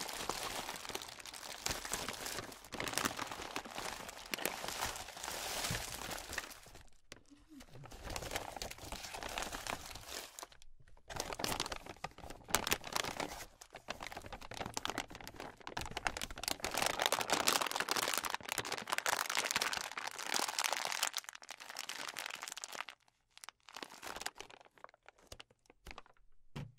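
A plastic bag crinkles and rustles close up.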